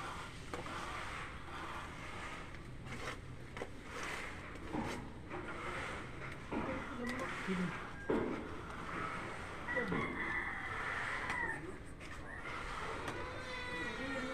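A trowel scrapes wet plaster onto a wall.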